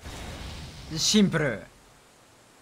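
A large beast growls low and menacingly.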